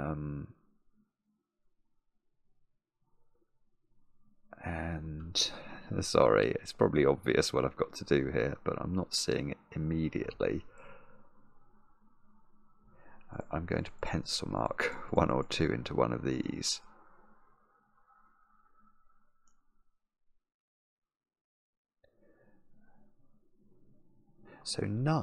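A middle-aged man talks calmly and thoughtfully, close to a microphone, with pauses.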